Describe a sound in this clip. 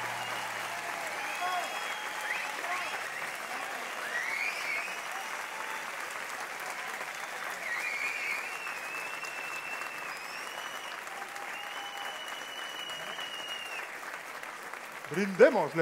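A large cast of men and women sings together on a stage, with a long held final note.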